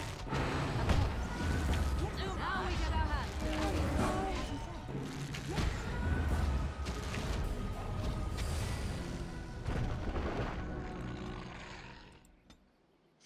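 Game combat sounds clash and thud loudly.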